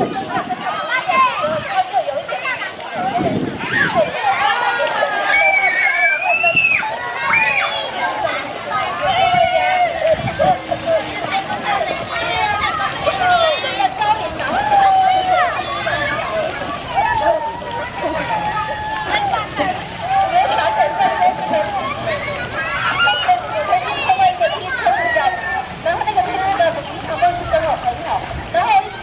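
Water splashes as children run and play in a shallow pool.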